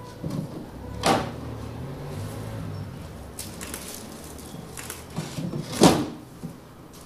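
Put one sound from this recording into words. Frozen packages thump and rustle inside a chest freezer.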